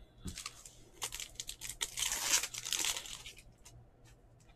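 A foil trading card pack wrapper crinkles and tears open.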